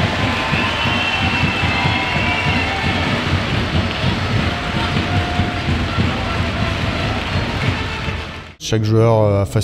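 A stadium crowd cheers and shouts.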